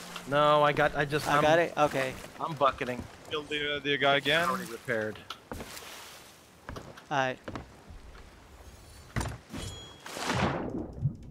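Waves churn and splash on open water.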